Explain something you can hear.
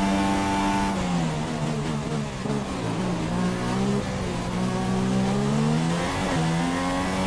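A racing car engine drops in pitch as the car brakes hard and then revs up again.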